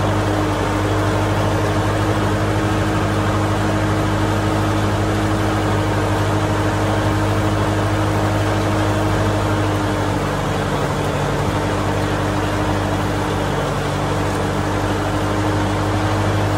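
A tractor engine drones steadily close by.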